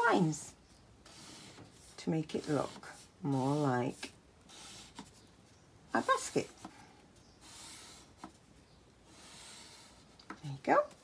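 A marker pen scratches softly on paper.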